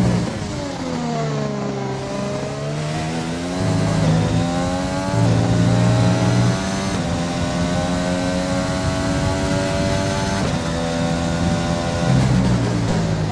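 A racing car engine roars loudly, rising in pitch as it accelerates and jumping down at each gear change.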